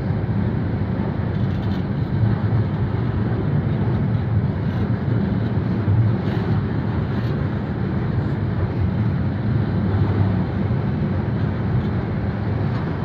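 Train wheels clatter on the rails.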